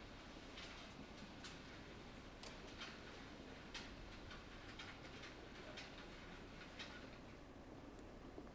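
Stage curtains slide shut with a soft swish.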